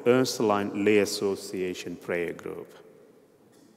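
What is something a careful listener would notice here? A man reads out calmly through a microphone, echoing in a large hall.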